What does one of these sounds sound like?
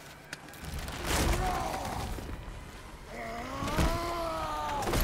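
A large tree trunk cracks and crashes to the ground.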